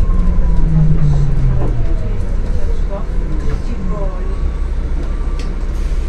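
A hybrid city bus's electric drive whines, falling in pitch as the bus slows.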